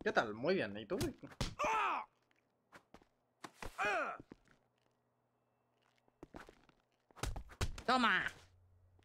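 Punches and kicks thud in a fight.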